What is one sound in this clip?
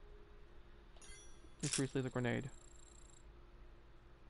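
A game confirmation sound chimes.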